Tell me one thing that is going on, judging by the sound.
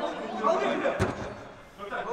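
A ball is kicked with a thud in a large echoing hall.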